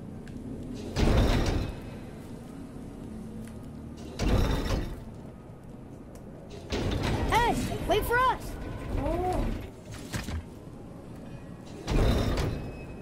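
Heavy thuds sound as a climber grips and hauls on a rope.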